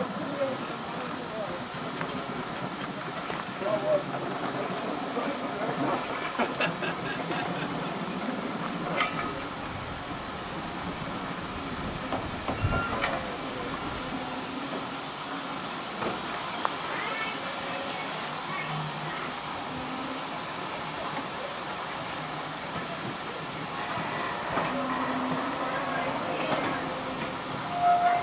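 Railway carriage wheels rumble slowly along the rails.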